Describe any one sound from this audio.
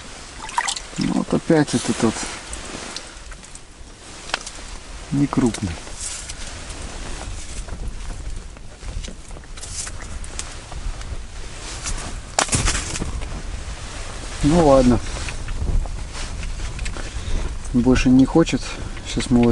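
A man talks calmly nearby, in short bursts.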